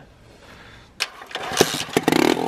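A motorcycle kickstarter is stomped with a sharp clunk.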